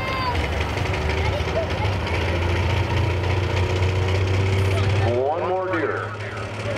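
A tractor engine idles with a deep, loud rumble.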